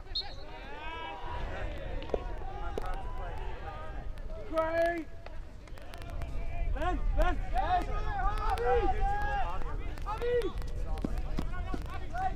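Men shout and call out to each other outdoors.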